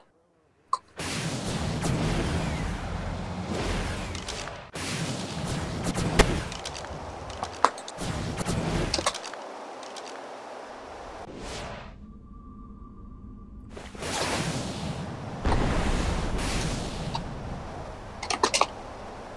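A jetpack thruster roars in bursts.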